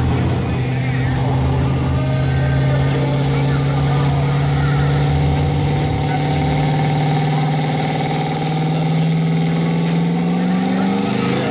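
A diesel truck engine roars loudly and revs higher toward the end.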